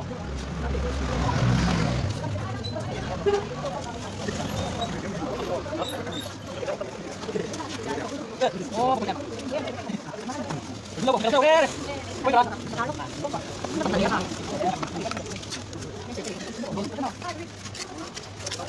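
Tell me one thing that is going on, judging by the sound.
A trowel scrapes across wet cement.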